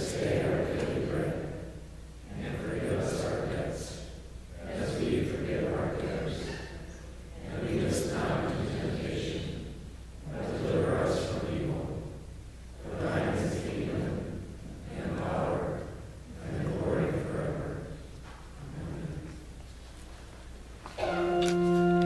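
A young man speaks calmly through a microphone in a large echoing hall.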